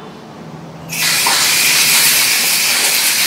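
Water gushes from a tap.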